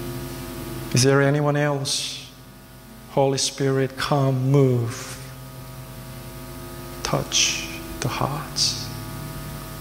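A young man speaks with animation through a microphone in a large room.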